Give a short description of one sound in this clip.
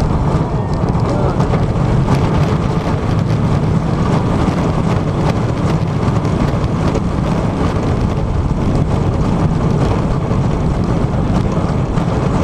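Wind roars loudly past a microphone on a fast-moving roller coaster.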